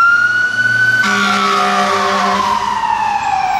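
A fire engine's air horn blares.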